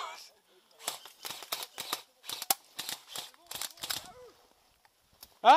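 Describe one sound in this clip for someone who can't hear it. An airsoft rifle fires a few shots nearby.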